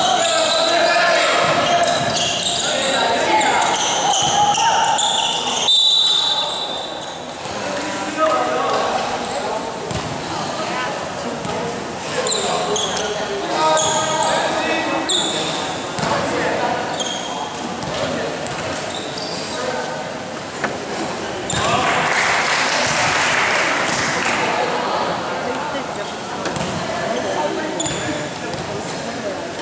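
Young players call out and shout in a large echoing hall.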